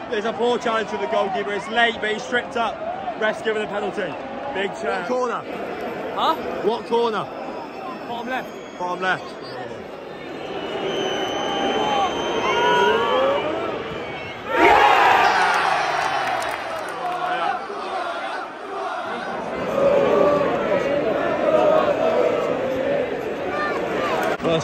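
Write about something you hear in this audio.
A large stadium crowd sings and chants loudly.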